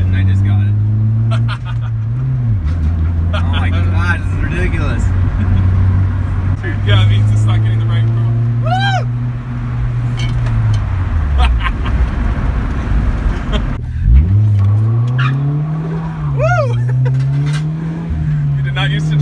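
A car engine hums steadily and changes pitch as the car speeds up and slows down.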